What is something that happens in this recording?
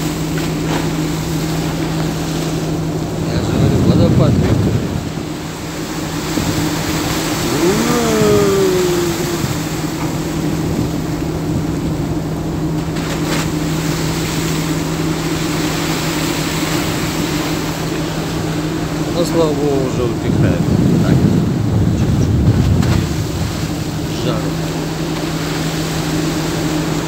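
Waves churn and rush along the side of a moving ship.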